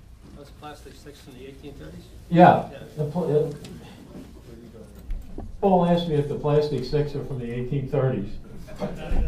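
An elderly man talks with animation nearby.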